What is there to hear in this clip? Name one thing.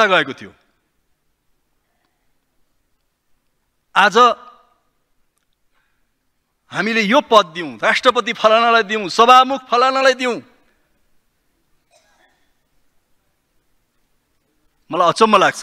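A man speaks in bursts into a microphone, with pauses between phrases.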